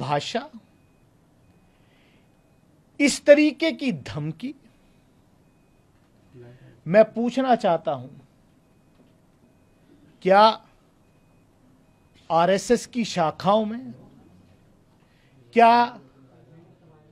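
A middle-aged man speaks emphatically into a close microphone, in short bursts with pauses.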